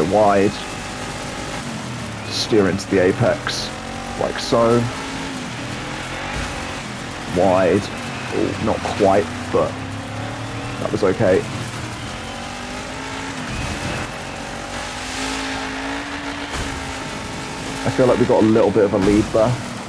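Tyres skid and crunch over loose dirt.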